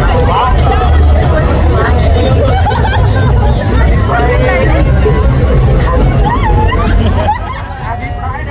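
Men and women in a crowd whoop and shout.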